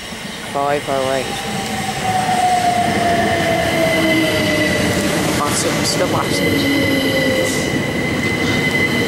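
Train brakes squeal with a slowly falling whine.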